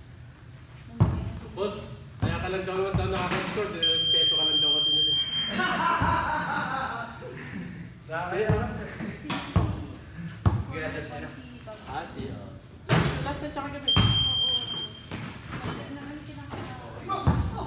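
Young men call out and talk loudly in a large echoing hall.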